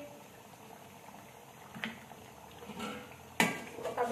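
Liquid pours into a pan.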